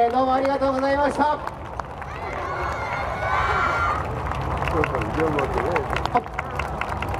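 A group of young dancers shout in chorus.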